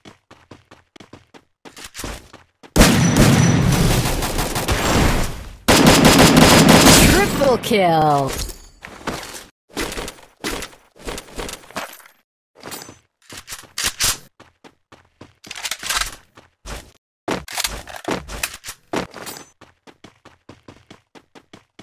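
Quick footsteps patter on hard ground.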